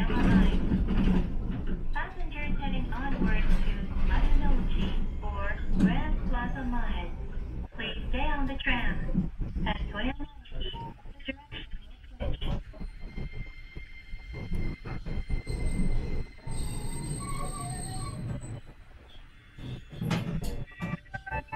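A tram rumbles and rattles along its tracks.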